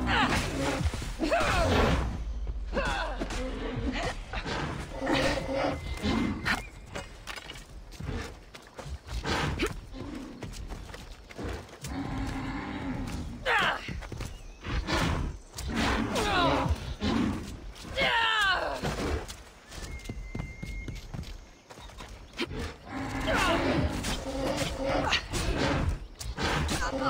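A spear strikes a stag with sharp thuds.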